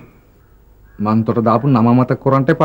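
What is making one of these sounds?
A man speaks firmly in reply, close by.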